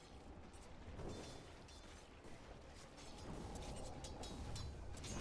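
Magic spells whoosh and crackle in a fantasy battle.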